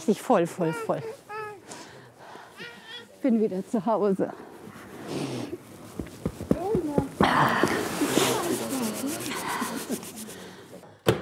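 An elderly woman speaks emotionally close by, her voice muffled by a mask.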